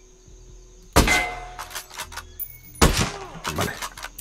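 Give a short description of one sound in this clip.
A rifle shot cracks loudly and echoes.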